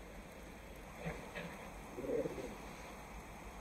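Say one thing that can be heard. A wolf growls and snarls in short bursts.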